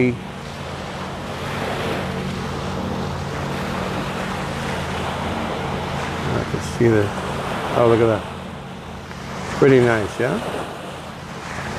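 Small waves wash onto a shore.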